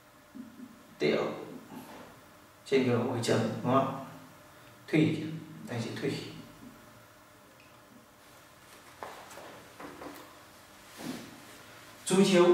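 A man speaks calmly and clearly, as if teaching, close by.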